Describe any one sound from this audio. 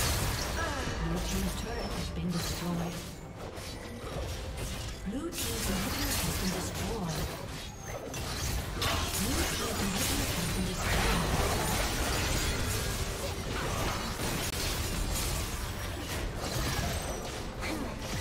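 Video game combat effects whoosh, zap and crackle in quick bursts.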